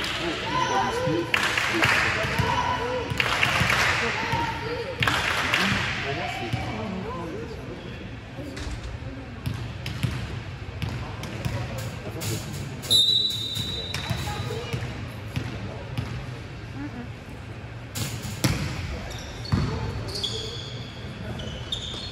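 Voices of players and spectators echo around a large hall.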